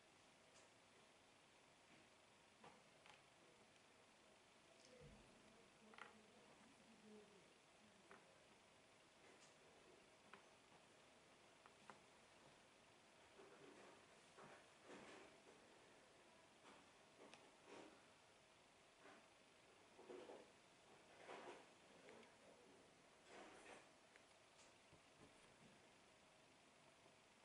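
Small puzzle pieces click and tap softly on a hard tabletop.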